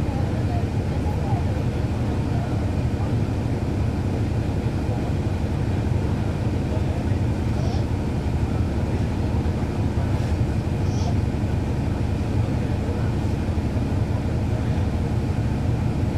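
A bus engine idles with a steady low rumble nearby.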